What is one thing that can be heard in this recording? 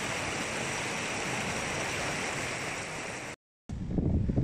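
A small waterfall splashes and rushes into a pool.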